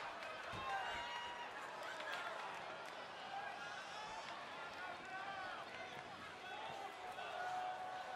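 A large crowd cheers and whistles in a big echoing hall.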